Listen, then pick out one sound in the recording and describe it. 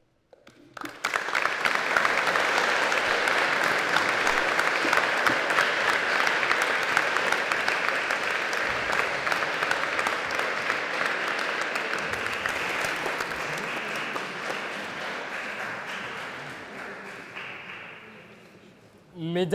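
An audience applauds loudly in a large hall, then the clapping slowly dies away.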